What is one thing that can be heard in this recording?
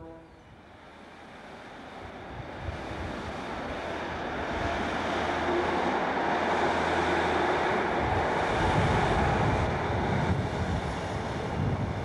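A diesel train engine rumbles nearby.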